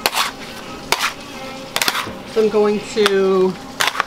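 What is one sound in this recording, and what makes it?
A metal scraper scrapes and taps on a stone slab.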